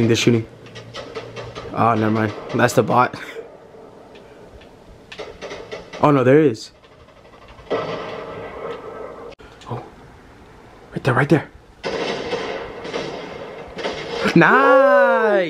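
Video game sounds play through a television.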